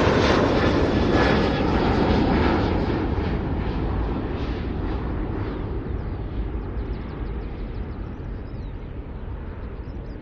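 A jet airliner's engines roar and slowly fade.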